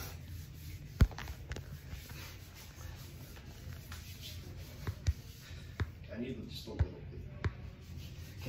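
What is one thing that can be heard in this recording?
Bumps and knocks thud against a phone held close.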